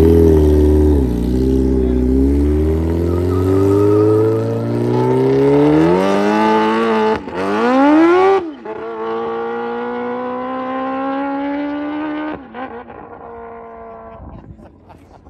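A motorcycle engine roars loudly and revs higher as the bike accelerates away, then fades into the distance.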